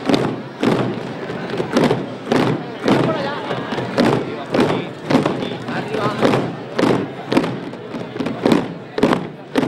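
A crowd murmurs softly nearby.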